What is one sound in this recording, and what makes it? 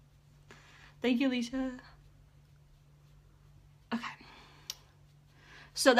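A young woman talks calmly and close to the microphone.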